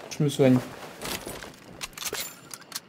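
A rifle's metal action clicks and clacks as it is handled.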